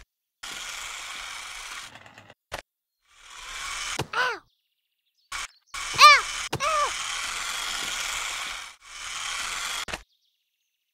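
A toy car's motor whirs in bursts.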